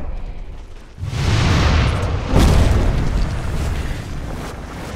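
Fiery magic blasts roar and crackle.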